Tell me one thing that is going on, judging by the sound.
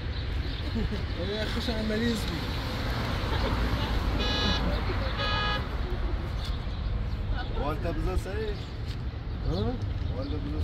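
A young man talks nearby.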